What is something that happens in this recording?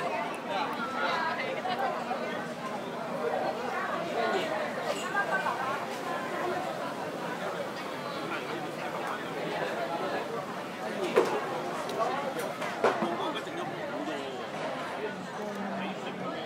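Dishes and cutlery clink now and then.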